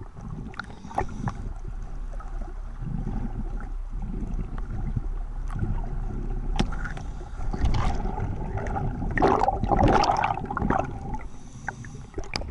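Air bubbles gurgle and rush loudly underwater, close by.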